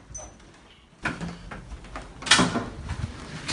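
A door handle clicks and a door opens.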